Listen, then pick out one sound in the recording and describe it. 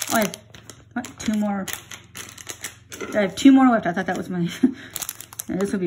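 A foil wrapper crinkles and rustles in hands.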